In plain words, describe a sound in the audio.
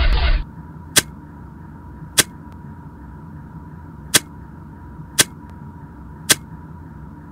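Short electronic clicks sound at intervals.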